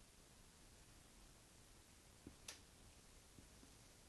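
Small scissors snip a thread.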